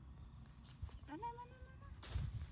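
A baby monkey gives a short high squeal.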